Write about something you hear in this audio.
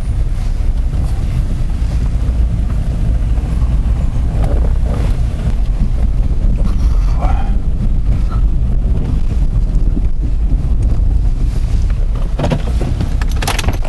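A car engine rumbles steadily nearby.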